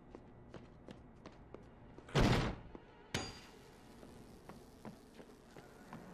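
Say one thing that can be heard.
Heavy blows thud repeatedly against bodies.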